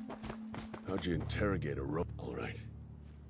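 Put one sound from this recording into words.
A man speaks calmly, up close.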